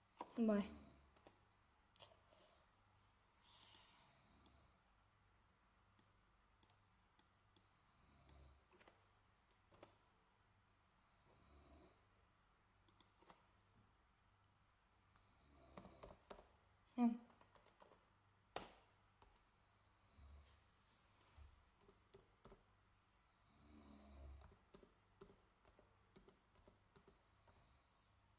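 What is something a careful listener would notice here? Keys click as someone types on a computer keyboard.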